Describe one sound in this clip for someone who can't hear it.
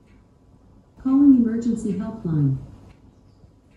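An elderly woman speaks close by.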